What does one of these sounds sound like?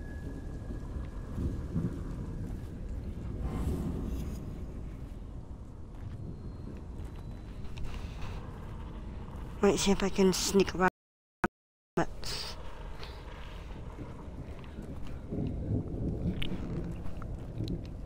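Tall dry grass rustles as someone creeps through it.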